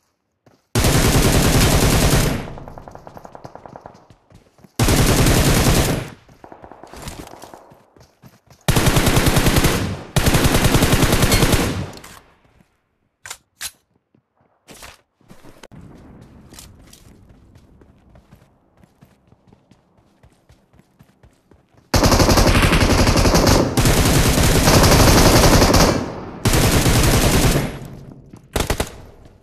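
Rapid gunfire rattles in loud bursts, with echoes trailing after.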